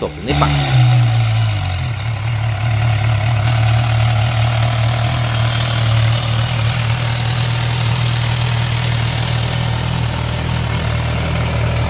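A motorcycle engine idles with a deep, steady rumble close by.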